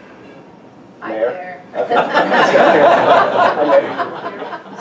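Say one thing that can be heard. A man speaks to an audience through a microphone.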